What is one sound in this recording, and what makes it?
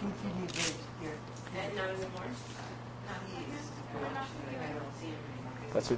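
A young woman talks briefly close by.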